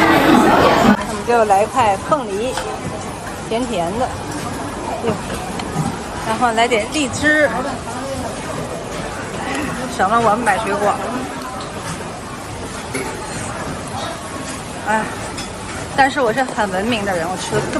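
People murmur and talk in the background.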